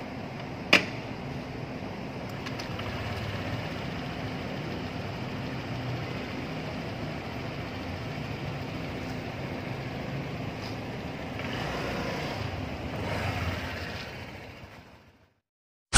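A motor scooter engine idles steadily nearby.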